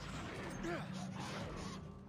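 An arrow whooshes through the air.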